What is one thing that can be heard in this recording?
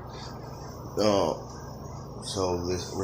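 A man speaks briefly and quietly, close to the microphone.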